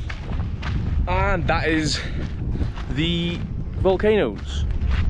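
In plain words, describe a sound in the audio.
A young man talks animatedly close to a microphone.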